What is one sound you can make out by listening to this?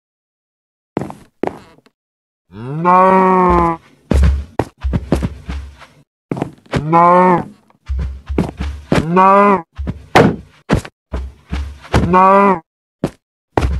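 A sword strikes a buffalo with quick thuds.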